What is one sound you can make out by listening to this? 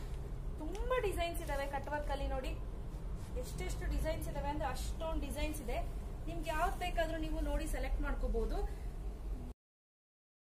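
A woman speaks calmly and with animation close by.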